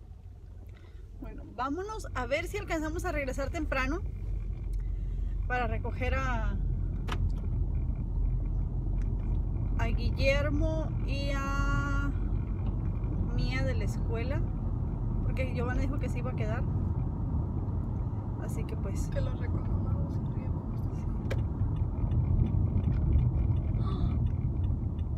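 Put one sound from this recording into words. A car engine hums low and steady inside the car.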